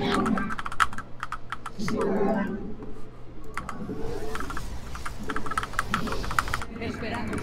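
Short clicks and blips from a computer game sound rapidly.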